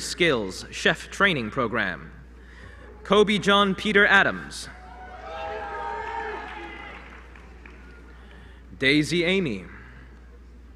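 A man reads out names through a microphone and loudspeakers in a large echoing hall.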